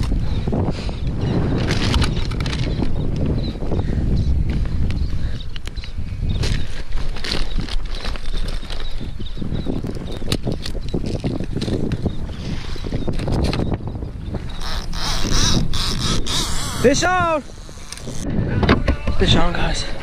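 Water laps and splashes against a kayak hull.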